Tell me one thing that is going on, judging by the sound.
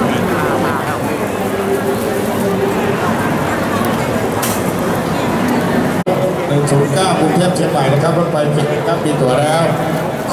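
A crowd of men and women chatters in a large echoing hall.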